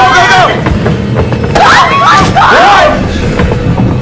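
A young woman shouts in panic.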